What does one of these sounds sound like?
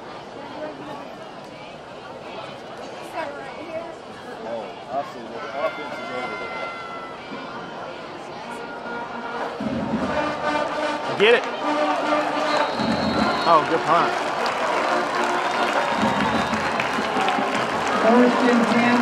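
A large stadium crowd murmurs and cheers outdoors, growing louder toward the end.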